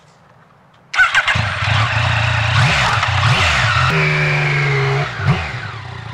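A motorcycle engine revs and pulls away.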